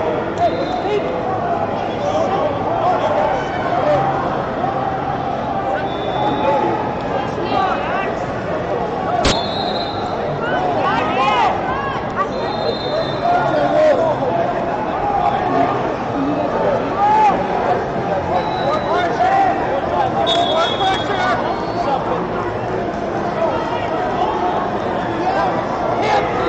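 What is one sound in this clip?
A large crowd chatters and shouts in an echoing hall.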